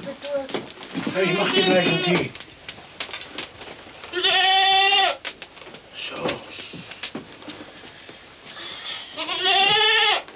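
A man calls out loudly in drawn-out tones nearby.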